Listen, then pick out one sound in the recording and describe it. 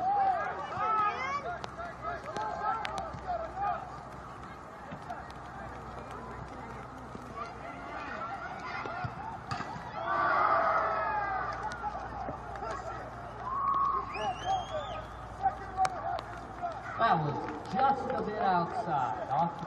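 Spectators cheer and shout from a distance outdoors.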